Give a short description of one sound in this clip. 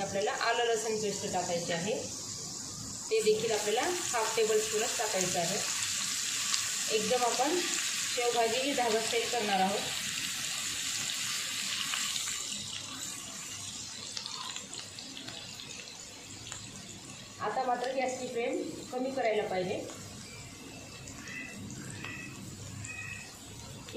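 Oil sizzles and crackles in a hot pan.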